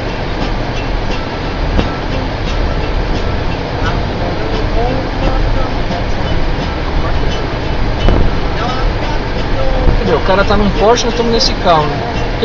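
A car drives steadily along a highway, its tyres and engine rumbling low.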